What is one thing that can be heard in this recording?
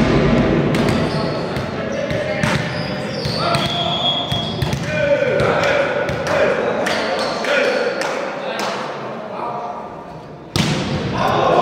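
A volleyball is hit with sharp slaps in a large echoing hall.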